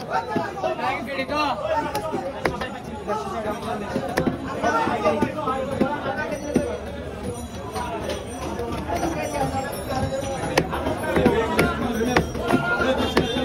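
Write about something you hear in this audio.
A heavy knife chops and thuds against a wooden block.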